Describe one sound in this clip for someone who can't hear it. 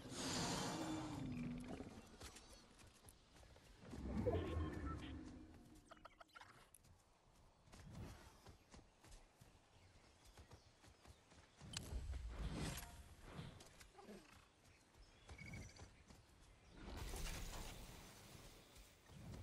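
A large creature's footsteps thud as it runs over grass.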